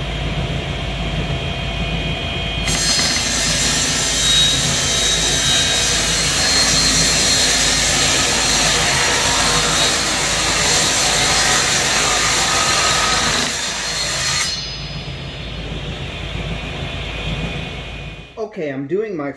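A table saw runs with a steady whine.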